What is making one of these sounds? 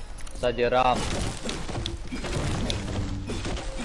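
A pickaxe strikes wood with dull thuds.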